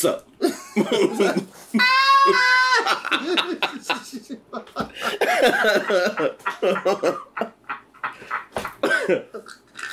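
A man laughs loudly and heartily close to a microphone.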